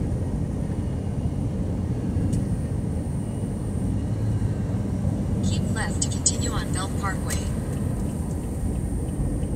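A car's engine hums steadily with road noise from inside.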